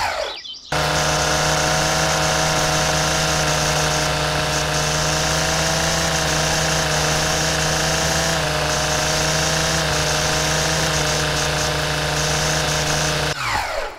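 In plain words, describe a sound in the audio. A string trimmer engine whines steadily while cutting grass.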